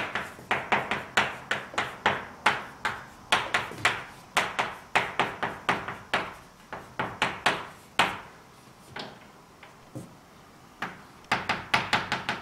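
Chalk taps and scrapes sharply on a blackboard in quick bursts, with a short pause.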